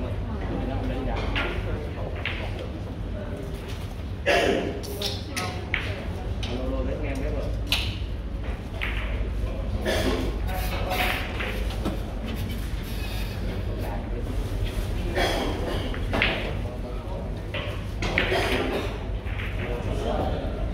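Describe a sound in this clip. Several men chat in the background.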